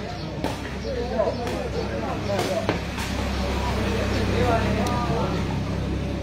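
A ball thuds off a player's foot.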